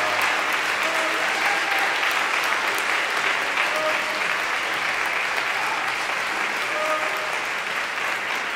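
An orchestra plays music in a large hall.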